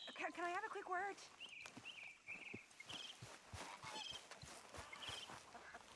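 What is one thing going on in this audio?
Footsteps run through tall grass.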